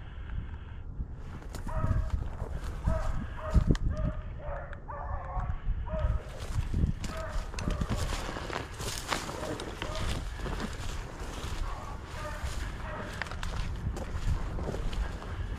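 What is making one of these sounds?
Footsteps crunch and swish through dry tall grass.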